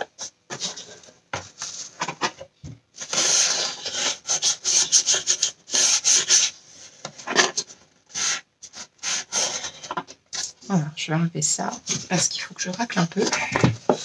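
Cardboard scrapes and rustles as a box is handled.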